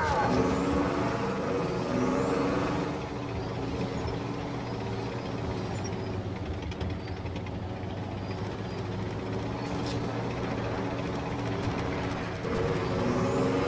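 A heavy vehicle engine rumbles steadily as it drives.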